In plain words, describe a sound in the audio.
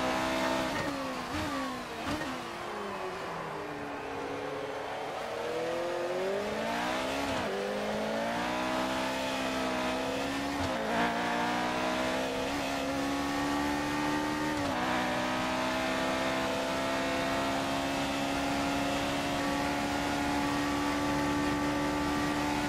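A racing car engine whines, dropping in pitch through a corner, then climbs steadily through the gears.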